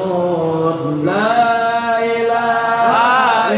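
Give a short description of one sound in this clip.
A man sings a long drawn-out melody through a microphone.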